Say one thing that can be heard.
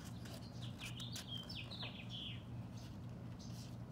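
A page of a book turns with a soft rustle.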